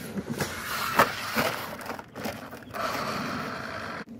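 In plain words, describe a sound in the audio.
A toy car tumbles and thuds on the ground.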